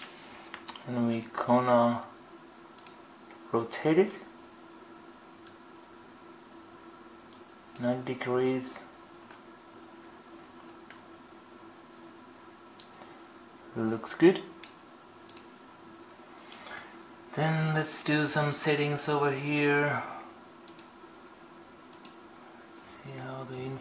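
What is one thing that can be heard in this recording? A man speaks calmly in short bursts close by.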